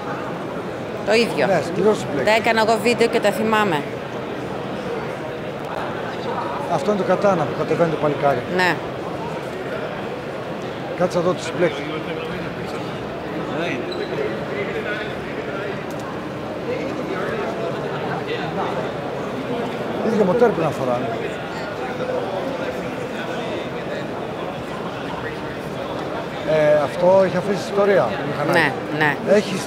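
A middle-aged man talks with animation close to a microphone.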